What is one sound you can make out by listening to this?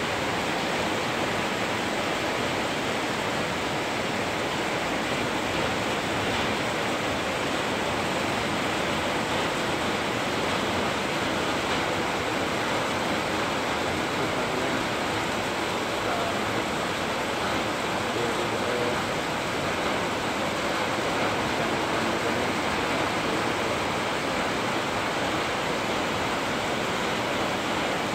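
Heavy rain drums on metal roofs.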